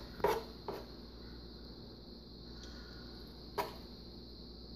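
A spoon scrapes and clinks against a metal pot.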